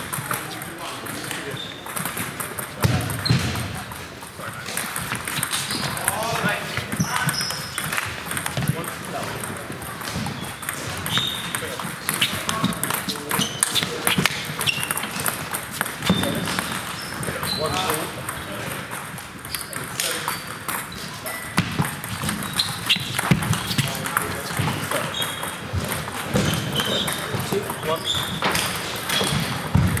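Ping-pong balls click from other tables throughout a large echoing hall.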